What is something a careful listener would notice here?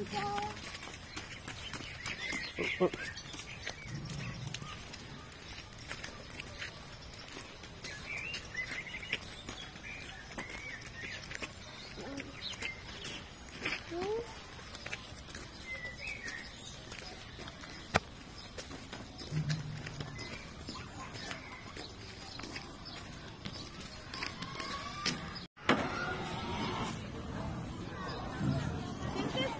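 A pony's hooves clop as it walks on a hard dirt path.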